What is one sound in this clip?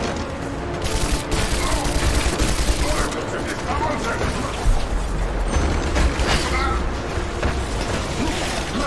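A rifle fires bursts of shots.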